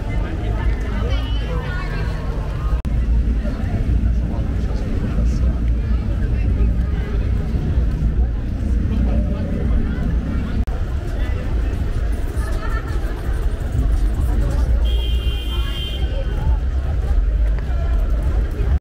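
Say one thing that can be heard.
Steady rain falls outdoors.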